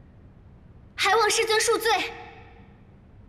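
A young woman pleads softly.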